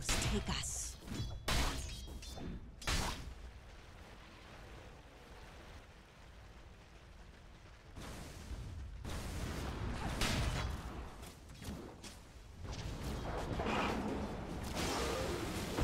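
Magical blasts and clashing blows burst out in a fight.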